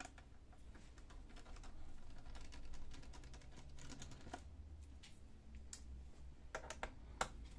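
Plastic clicks and taps sharply as a tool knocks against a casing.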